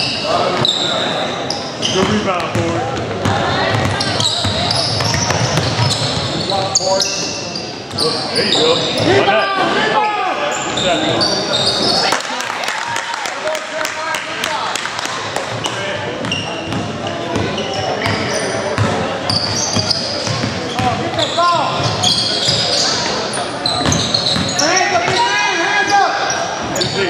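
Spectators in the stands chatter and call out in a large echoing gym.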